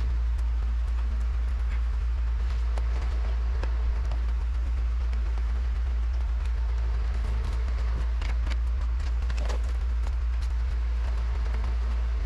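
Plastic sheet crinkles and rustles as a sticker is peeled and smoothed.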